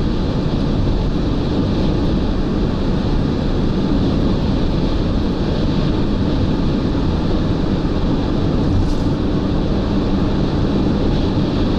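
Wind roars steadily against a fast-moving car.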